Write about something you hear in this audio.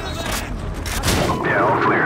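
An explosion booms with a heavy roar.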